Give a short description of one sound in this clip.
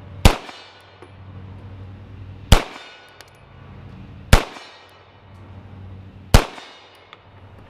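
A pistol fires single loud shots outdoors, each echoing off among the trees.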